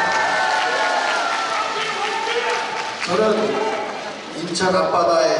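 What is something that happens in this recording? A middle-aged man speaks with animation into a microphone, heard through loudspeakers in a large echoing hall.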